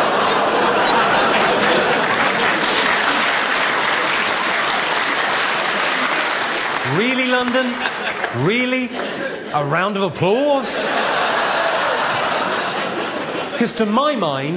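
A large audience laughs and applauds in an echoing hall.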